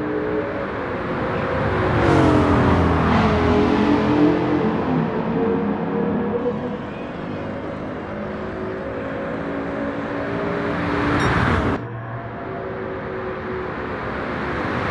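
Several race car engines roar at high revs.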